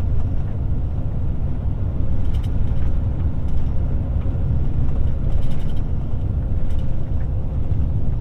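A vehicle's engine hums steadily as its tyres roll along a paved road.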